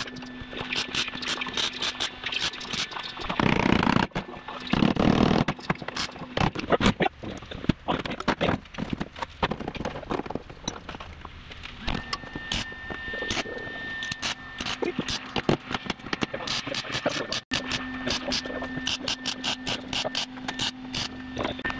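A welder crackles and sputters in short bursts.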